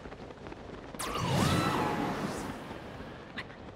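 A loud whoosh sweeps by and fades.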